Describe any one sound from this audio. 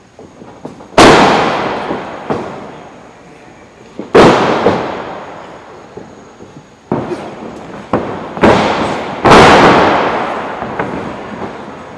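Bodies slam hard onto a wrestling ring mat, booming and echoing through a large hall.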